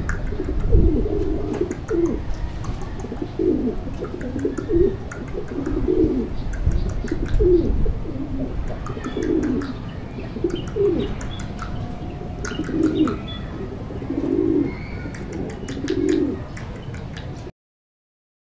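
A pigeon coos repeatedly nearby.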